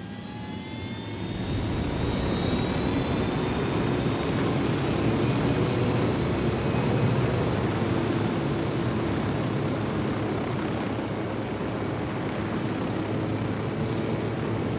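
A helicopter's rotor thumps loudly as it flies.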